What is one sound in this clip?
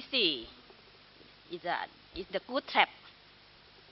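A woman speaks into a microphone over a loudspeaker in a large room, in short phrases.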